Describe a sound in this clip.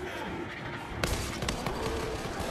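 A gun fires with sharp loud bangs.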